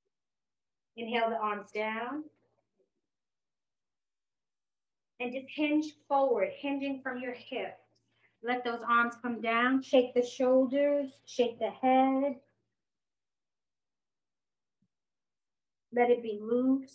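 A woman speaks calmly and clearly into a close microphone, giving instructions in short phrases.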